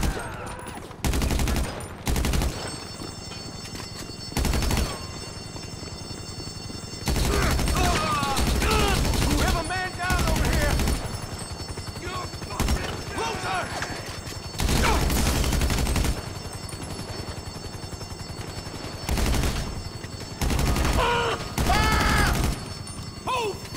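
Rapid bursts of automatic gunfire ring out loudly.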